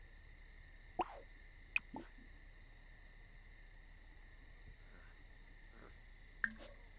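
Short soft clicks and chimes sound a few times.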